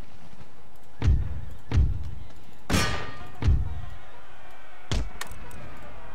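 Guns fire in loud, booming shots that echo across open ground.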